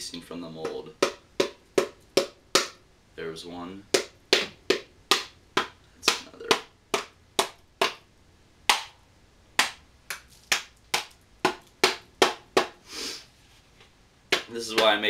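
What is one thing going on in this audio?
A wooden mallet knocks repeatedly on a hollow metal tube.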